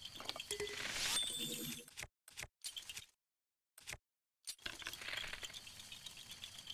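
A bow twangs as arrows are loosed.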